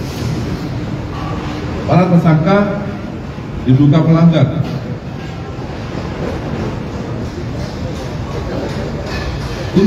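A man reads out loudly through a microphone and loudspeakers.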